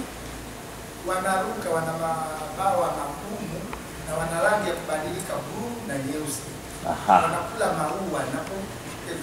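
A man speaks loudly in a reverberant hall.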